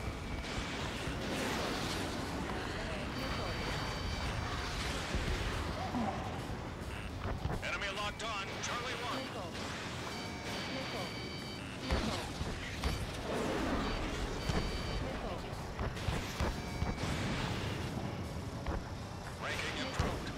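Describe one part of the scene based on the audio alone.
Warning beeps sound in short repeated tones.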